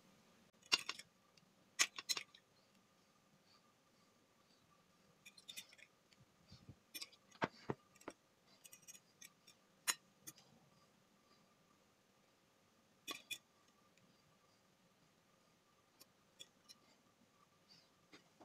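A metal fork clinks and taps against glass and china plates.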